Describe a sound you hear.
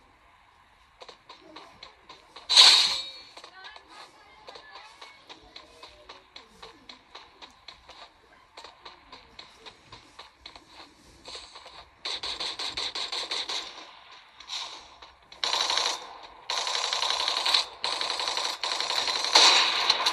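Rapid gunfire from a mobile game plays through a small phone speaker.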